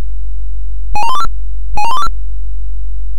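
A short rising electronic bleep sounds twice in quick succession.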